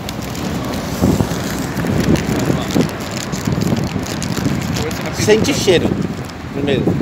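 A crinkly plastic snack bag rustles.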